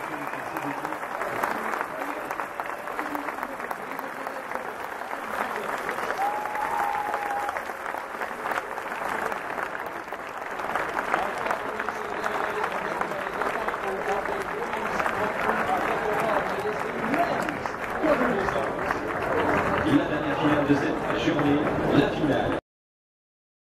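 A crowd claps and cheers outdoors.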